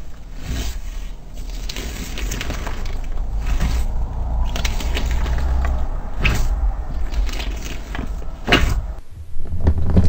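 Fingers press and squish slime with small crackles.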